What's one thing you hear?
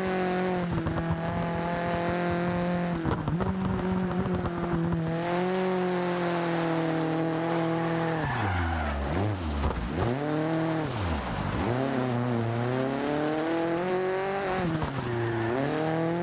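Gravel sprays and rattles under skidding tyres.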